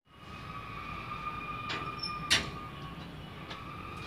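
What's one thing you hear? A metal gate clanks as it swings open.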